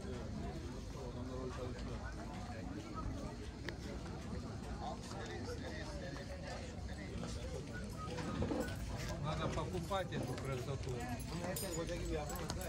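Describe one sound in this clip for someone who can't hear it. A crowd of men and women chatters in the background outdoors.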